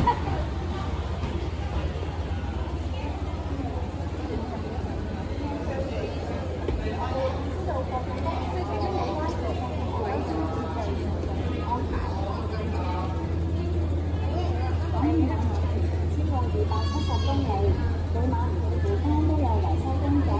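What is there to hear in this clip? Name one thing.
People chatter nearby in an echoing hall.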